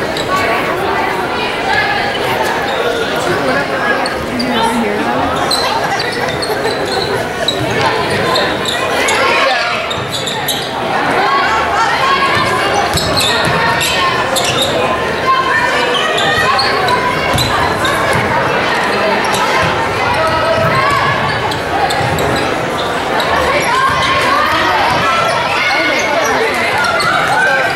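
A crowd chatters and calls out throughout a large echoing gym.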